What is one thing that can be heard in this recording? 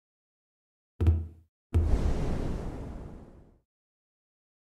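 A game menu makes a deep thud and a soft whoosh as its pages switch.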